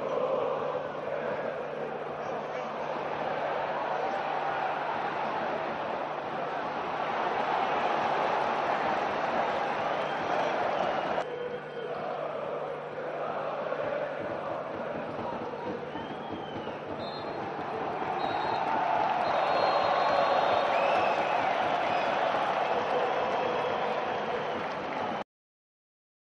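A large stadium crowd roars and chants loudly.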